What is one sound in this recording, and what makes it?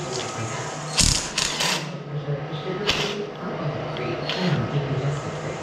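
A cordless power tool whirs in short bursts.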